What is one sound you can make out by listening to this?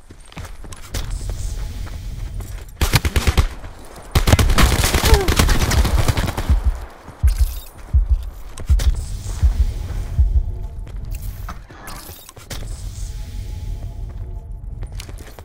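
Footsteps thud quickly on the ground while running.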